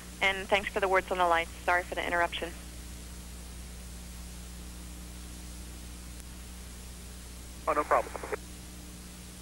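A man speaks briefly over a crackly radio link.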